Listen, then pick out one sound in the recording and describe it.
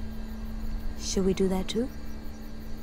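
A child speaks quietly and hesitantly.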